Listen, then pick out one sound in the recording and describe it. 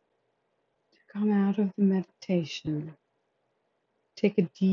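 A woman speaks calmly, reading out.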